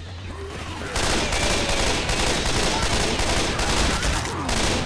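Automatic gunfire rattles steadily.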